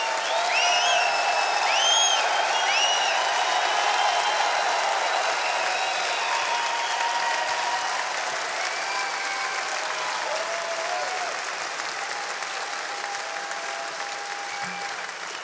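A large crowd cheers loudly in a big echoing hall.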